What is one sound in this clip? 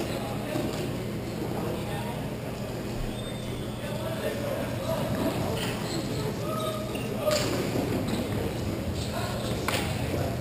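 Hockey sticks clack against a ball and against each other.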